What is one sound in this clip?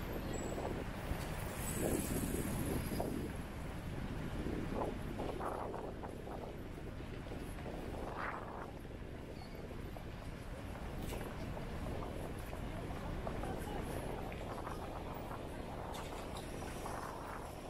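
Distant chatter of passers-by murmurs throughout.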